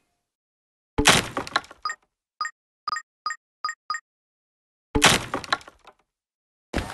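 A loud crash of bricks bursts through a wall.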